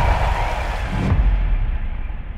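A car lands hard with a thud.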